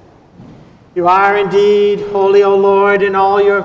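An elderly man chants in a sung voice through a microphone, echoing in a large hall.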